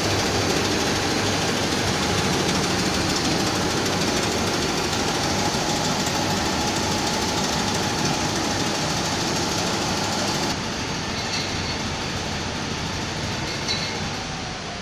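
A machine hums and rumbles steadily.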